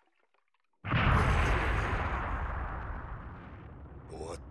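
A heavy blow lands with a loud crash that slowly dies away.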